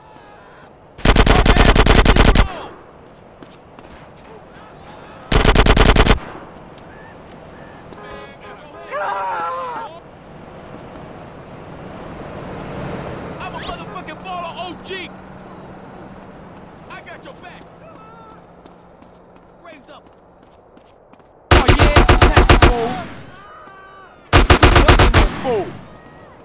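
Rapid bursts of automatic gunfire ring out close by.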